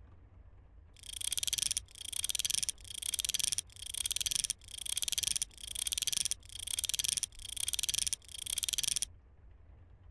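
A clock strikes eight times, with loud ringing chimes.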